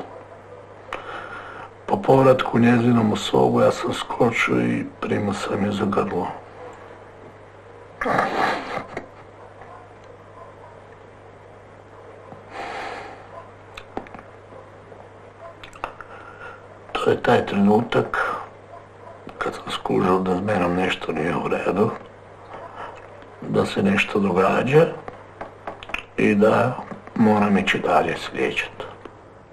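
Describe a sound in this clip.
A middle-aged man speaks calmly and earnestly close by, with pauses.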